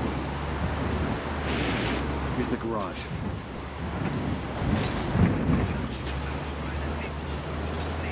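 Tyres crunch over a dirt road.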